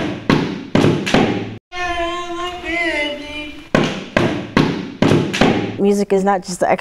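A hand drum is struck in quick, ringing beats.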